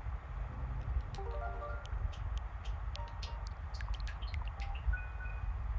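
Short electronic game beeps chirp.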